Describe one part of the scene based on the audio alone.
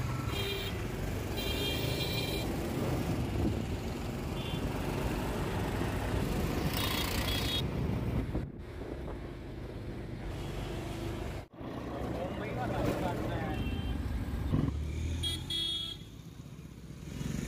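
An auto-rickshaw engine rumbles and rattles.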